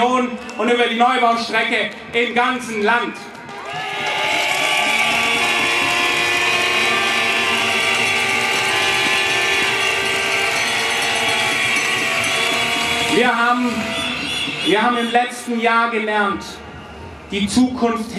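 A young man speaks with passion into a microphone, heard through loudspeakers outdoors.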